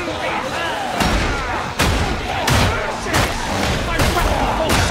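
A weapon strikes enemies with repeated heavy, wet thuds.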